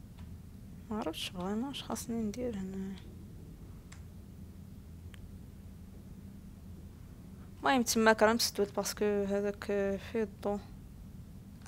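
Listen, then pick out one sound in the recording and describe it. A young woman speaks into a close microphone in short, lively bursts.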